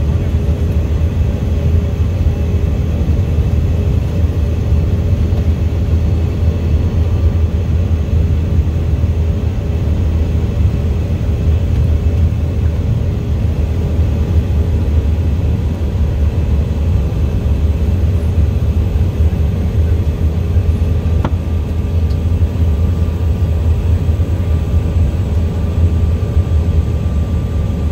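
A small plane's engine drones loudly and steadily inside the cabin.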